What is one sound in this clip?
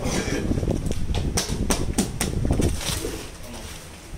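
A plastic crate clatters as fruit is tipped out of it.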